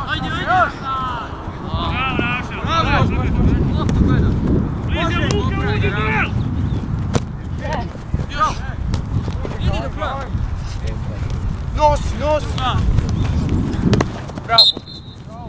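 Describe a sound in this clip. Young women call and shout to each other across an open field.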